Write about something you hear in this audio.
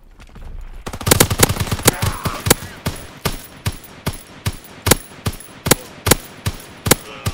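A rifle fires repeated sharp shots in quick succession.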